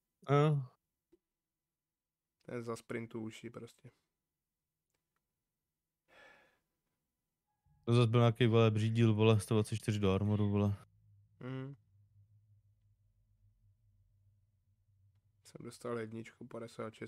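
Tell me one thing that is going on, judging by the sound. A young man speaks with animation close to a microphone, in short bursts with pauses.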